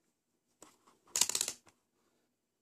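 A multimeter's rotary dial clicks as it is turned.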